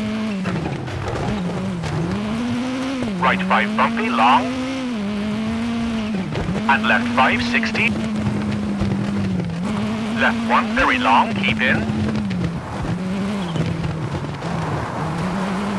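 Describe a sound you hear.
A rally car engine roars and revs up and down through gear changes.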